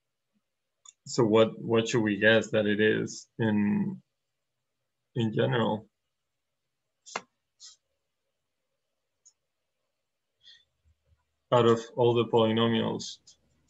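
A young man explains calmly, close to a microphone, pausing between phrases.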